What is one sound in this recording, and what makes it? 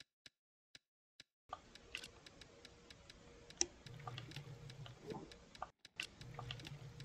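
Soft game menu clicks tick as items are moved.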